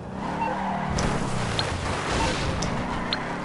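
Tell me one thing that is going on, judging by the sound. A car crashes into a wooden fence with a crunch.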